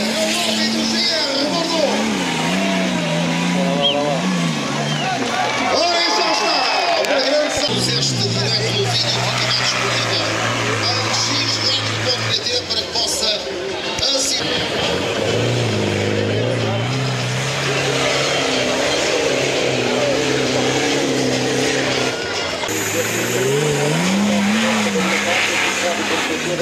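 An off-road vehicle's engine roars and revs hard as it climbs a steep slope.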